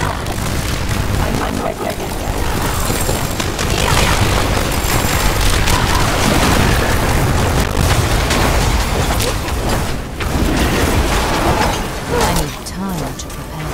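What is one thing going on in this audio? Spell blasts and explosions boom in quick bursts.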